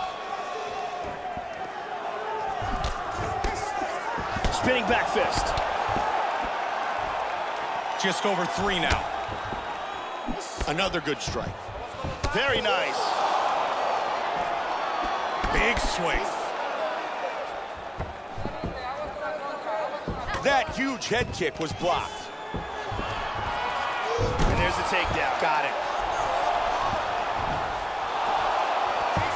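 A crowd cheers and roars steadily in a large arena.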